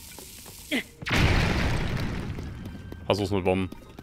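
A fiery explosion booms and roars.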